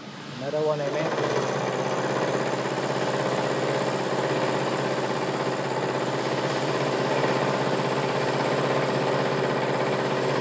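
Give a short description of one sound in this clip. A milling machine hums steadily as it runs.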